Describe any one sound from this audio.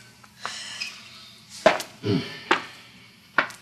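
A woman sobs and whimpers close by.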